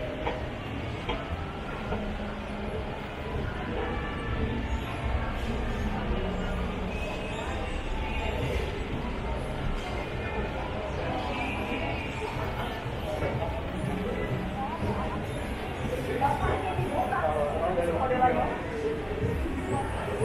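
Distant voices of a crowd murmur in a large echoing hall.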